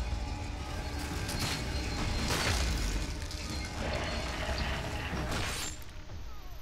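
A gun fires with sharp bangs.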